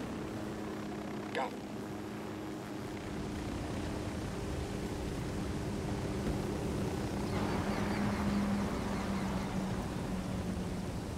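A helicopter's rotor whirs steadily close by.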